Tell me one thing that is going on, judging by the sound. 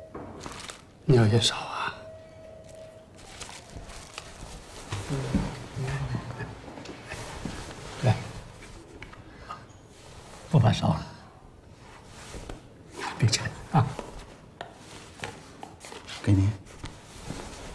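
An elderly man speaks calmly and softly, close by.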